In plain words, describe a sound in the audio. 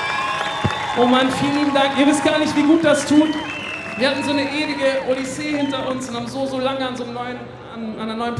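A young man sings into a microphone over loudspeakers.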